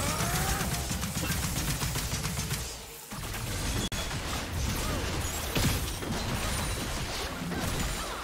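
Magic spells whoosh and burst in a fast battle.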